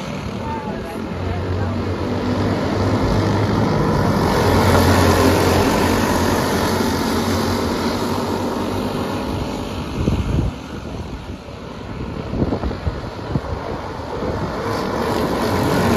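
Small kart engines buzz and whine as karts race around a track outdoors.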